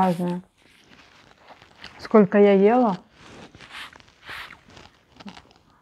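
A woman chews food with soft smacking sounds.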